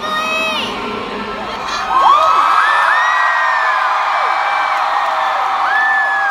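A woman sings through loudspeakers in a large hall.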